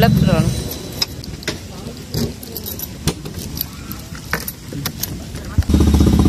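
A car door handle clicks and knocks.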